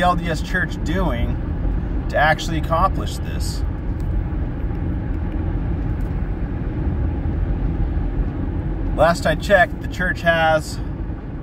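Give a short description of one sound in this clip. A car engine hums steadily with road rumble.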